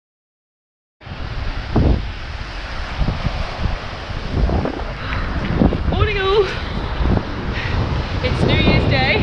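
Wind buffets loudly against the microphone.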